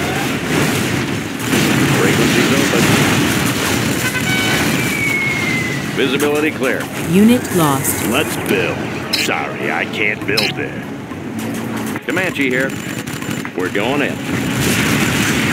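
Guns fire rapid shots.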